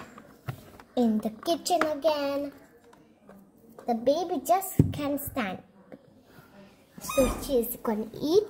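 A young girl talks close by, lively and high-pitched.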